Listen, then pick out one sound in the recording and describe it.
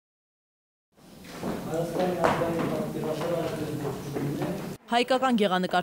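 Men and women murmur and chat nearby.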